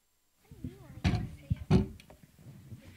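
Objects thump and clatter on a small table.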